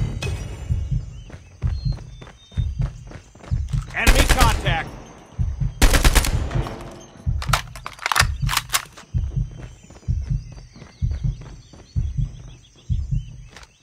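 Footsteps thud at a steady running pace.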